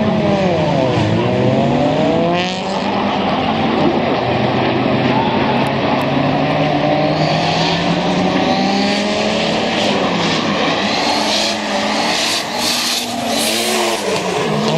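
Tyres screech loudly as cars slide through corners.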